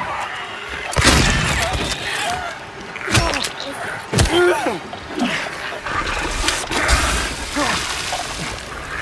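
A creature shrieks and groans close by.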